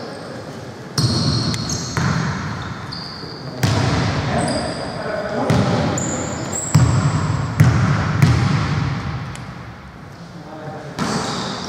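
A basketball thumps on the floor.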